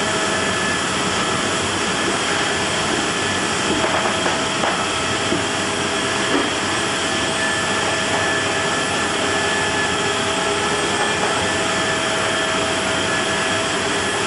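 A tank engine roars steadily as the tank rolls slowly forward.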